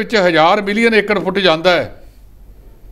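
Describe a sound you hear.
A middle-aged man speaks clearly into a microphone.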